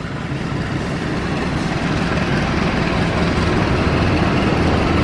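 A train rumbles past on the tracks, growing louder as it approaches.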